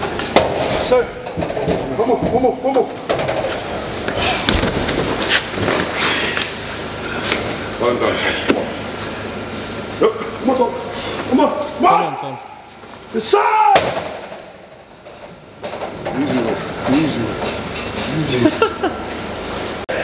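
Men talk and shout encouragement.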